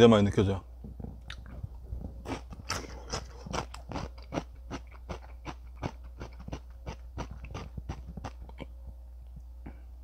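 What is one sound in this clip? A young man slurps and chews noodles with loud smacking.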